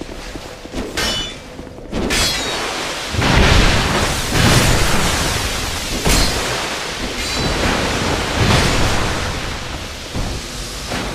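A heavy blade swings and clangs against armour.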